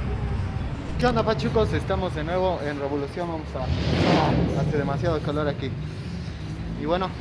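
A young man speaks with animation close to the microphone.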